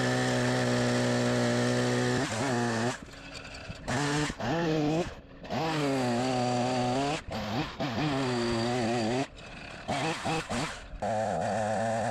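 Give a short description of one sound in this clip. A chainsaw engine roars loudly while cutting wood, dropping back to a quieter idle between cuts.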